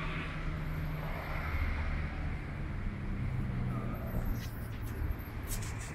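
Traffic rumbles along a nearby road outdoors.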